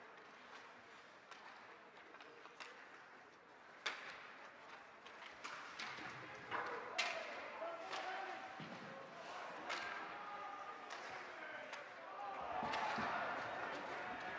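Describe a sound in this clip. Skates scrape and carve across ice.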